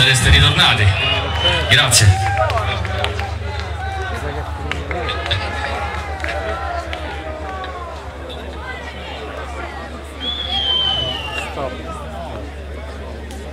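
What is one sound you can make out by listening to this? A crowd chatters loudly outdoors.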